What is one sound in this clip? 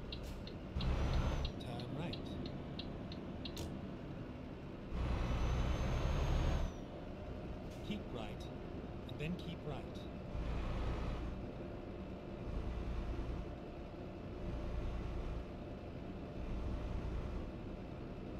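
A truck engine hums steadily as the truck drives along.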